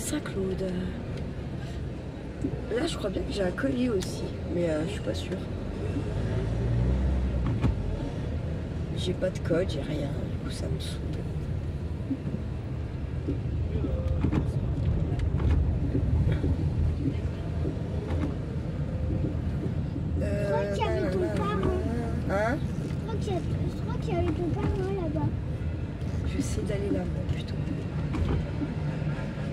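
A car engine hums low and steady from inside the car as it drives slowly.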